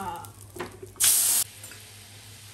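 A thick liquid is poured into a hot pan with a loud hiss.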